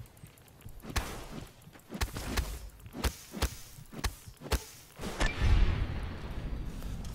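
Metal weapon blows clang against a robot.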